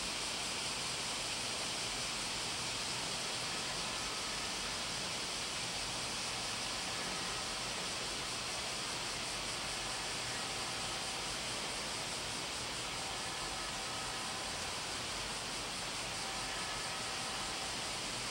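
A man chants faintly through loudspeakers in a large echoing hall.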